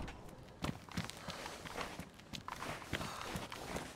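A car door creaks open.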